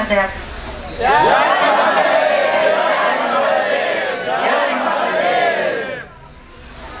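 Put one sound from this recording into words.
A middle-aged man sings out loudly and with emotion.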